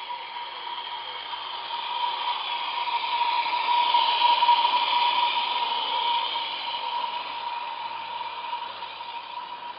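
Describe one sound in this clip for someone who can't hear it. A small steam engine hisses and puffs steam.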